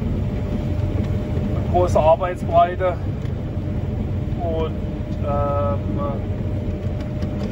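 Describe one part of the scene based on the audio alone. An engine rumbles steadily close by.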